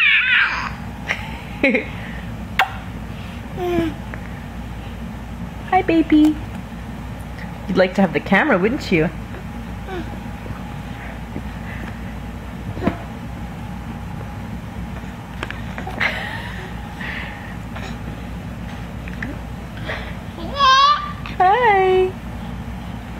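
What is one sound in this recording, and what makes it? A baby giggles and squeals close by.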